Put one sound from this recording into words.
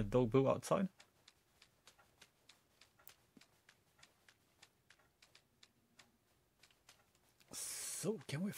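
Light footsteps tap quickly across a floor.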